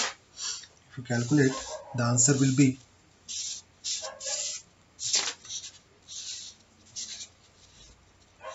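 Paper rustles and slides as sheets are moved by hand.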